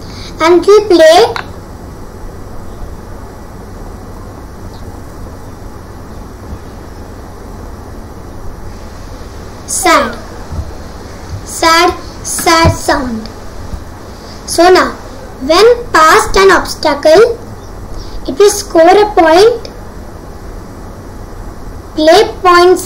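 A young boy talks with animation close to a microphone, in short bursts.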